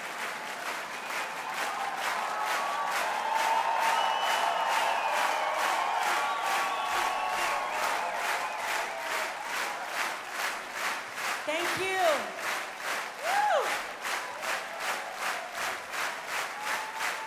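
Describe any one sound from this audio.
A large crowd claps in a fast, steady rhythm.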